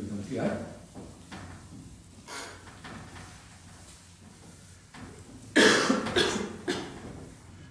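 A cloth rubs chalk off a blackboard.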